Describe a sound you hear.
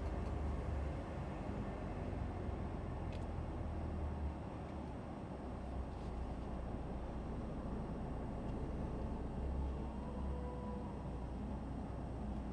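A truck engine hums steadily while driving.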